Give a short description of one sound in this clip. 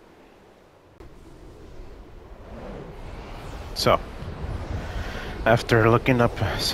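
A rushing whoosh of air swells as something flies fast through the air.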